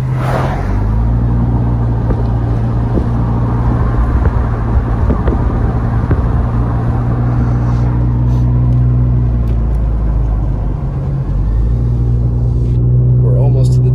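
Tyres rumble and hiss on the road.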